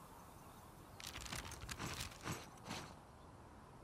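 A paper map rustles and crinkles as it unfolds.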